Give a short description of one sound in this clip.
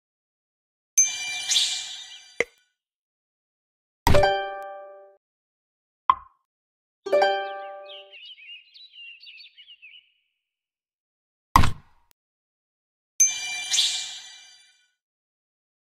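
A bright chime rings as a new turn begins.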